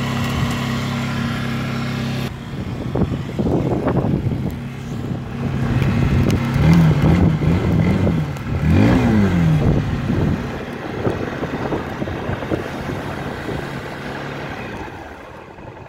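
A snowmobile engine idles with a low, steady hum.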